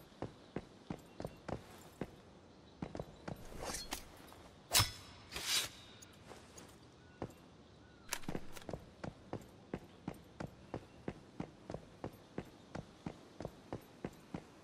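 Footsteps tap steadily and quickly on pavement.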